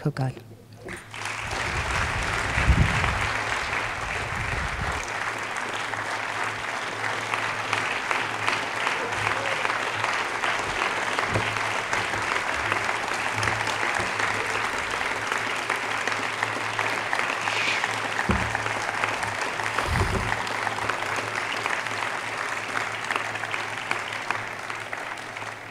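A large crowd applauds outdoors.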